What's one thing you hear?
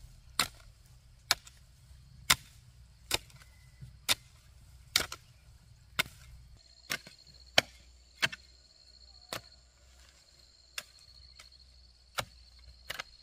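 A hoe strikes into dry soil in steady, repeated blows.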